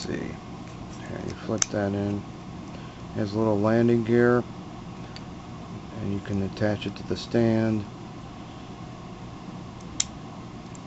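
Plastic toy parts click and rattle as hands handle them.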